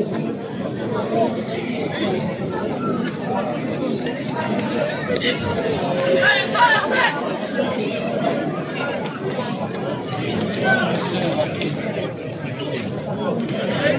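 A large outdoor crowd chatters and calls out throughout.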